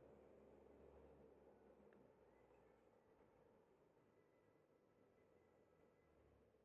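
Cars drive past at a nearby intersection with a low rumble that slowly fades.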